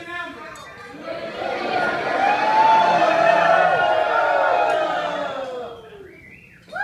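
A crowd of men and women cheers and shouts loudly in a large, echoing room.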